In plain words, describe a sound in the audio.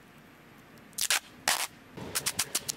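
Sticky tape rips loudly off a roll.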